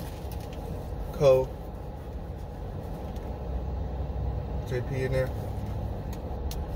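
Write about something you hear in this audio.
Tissue paper rustles as a sneaker is handled.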